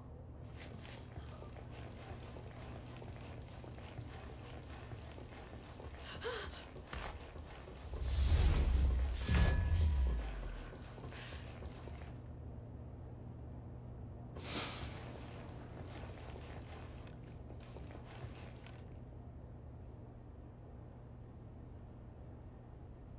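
Footsteps move softly across a hard floor.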